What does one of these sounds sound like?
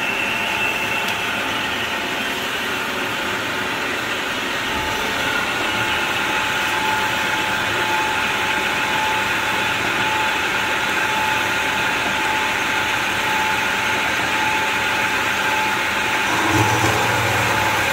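A band saw blade grinds steadily through metal with a high whine.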